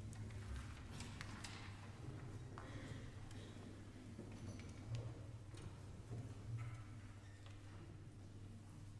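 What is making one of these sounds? An orchestra plays softly in a large echoing hall.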